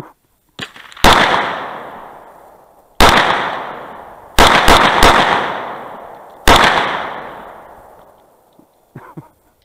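Gunshots fire one after another, each ringing out and echoing outdoors.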